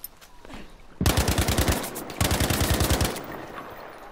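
A machine gun fires rapid bursts up close.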